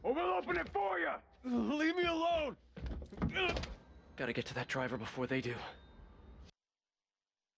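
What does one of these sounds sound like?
A man speaks forcefully, close up.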